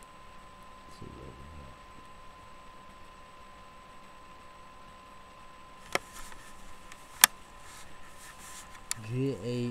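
A man speaks quietly and briefly, close to a microphone.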